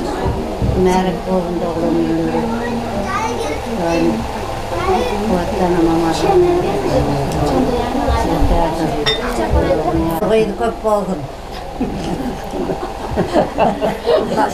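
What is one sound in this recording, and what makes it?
Elderly women talk together nearby.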